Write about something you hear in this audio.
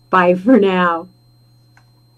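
A middle-aged woman calls out a cheerful greeting into a microphone.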